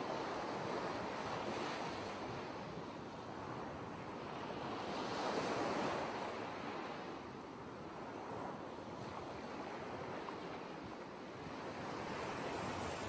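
Shallow water washes and splashes around feet in surges.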